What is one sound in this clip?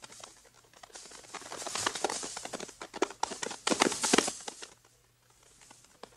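A horse's hooves thud as it gallops over leaves.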